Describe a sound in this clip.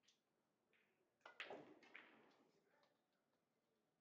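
A cue sharply strikes a billiard ball.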